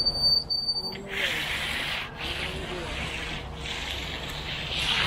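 A hand trowel scrapes and rasps along wet concrete.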